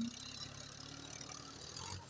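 A loader bucket scrapes into a pile of sand.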